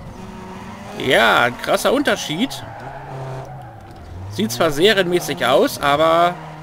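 Car tyres screech loudly in short bursts.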